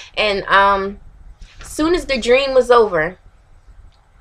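A young woman speaks close to the microphone with expressive, rising and falling tones.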